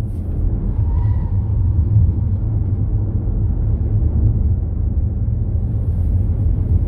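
A car engine roars steadily at speed.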